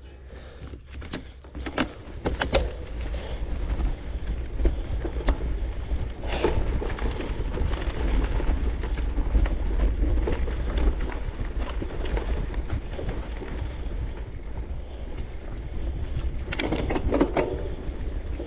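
Bicycle parts clatter and knock over bumps.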